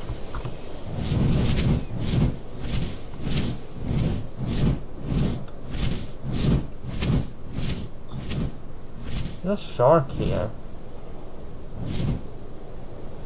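Large wings flap with heavy, regular whooshing beats.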